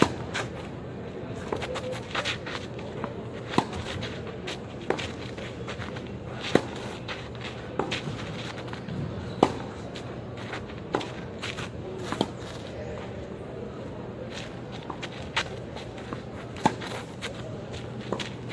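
Sneakers scuff and slide on a clay court.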